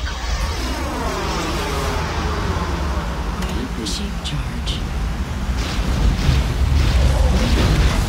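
A buggy's engine hums and whines as it drives.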